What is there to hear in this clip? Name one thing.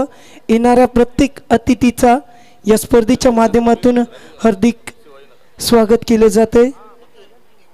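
A man announces with animation through a loudspeaker.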